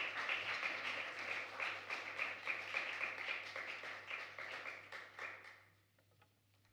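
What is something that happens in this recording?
A jazz band plays loudly with horns, piano and drums, then stops.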